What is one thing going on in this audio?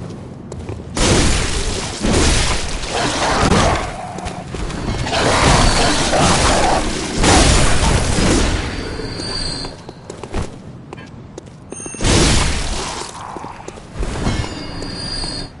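A heavy blade slashes and strikes flesh with wet thuds.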